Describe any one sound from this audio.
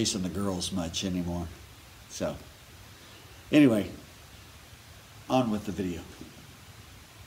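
A middle-aged man talks calmly and cheerfully into a microphone close by.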